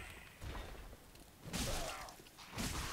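A sword strikes armour with a metallic clang.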